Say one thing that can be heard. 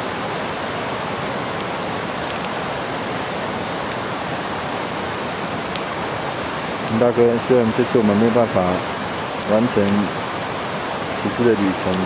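A stream flows and splashes steadily over rocks nearby.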